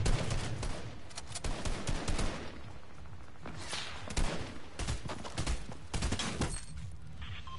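Bursts of rapid gunfire crack loudly.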